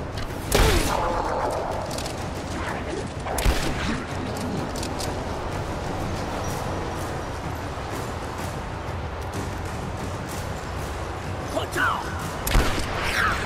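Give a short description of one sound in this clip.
Gunshots fire loudly.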